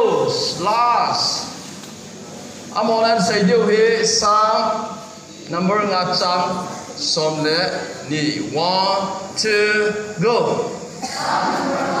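A man speaks loudly and with animation through a microphone and loudspeaker in an echoing hall.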